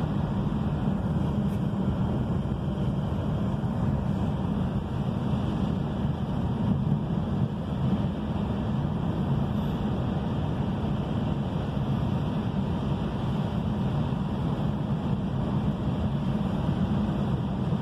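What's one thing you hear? Rain patters on a car windscreen.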